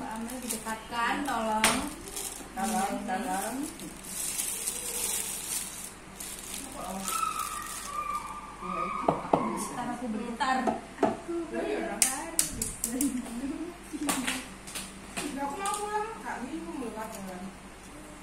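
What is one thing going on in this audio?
Small objects clink and tap on a table.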